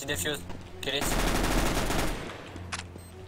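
A rifle fires a rapid burst.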